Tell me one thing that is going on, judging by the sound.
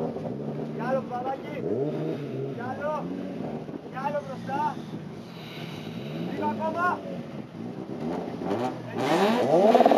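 A car engine revs in short sharp bursts while idling.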